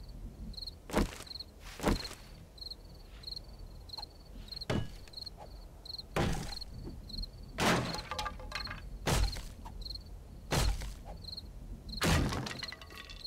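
A heavy tool thuds repeatedly against wooden boards.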